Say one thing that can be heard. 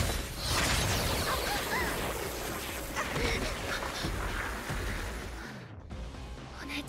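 A loud burst of energy roars and crackles.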